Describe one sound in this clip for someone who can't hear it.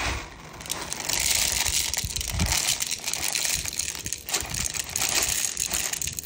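Plastic pellets rattle and pour from a bag into a magazine.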